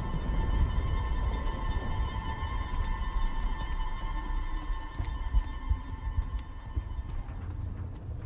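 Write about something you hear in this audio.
Footsteps splash on a wet surface.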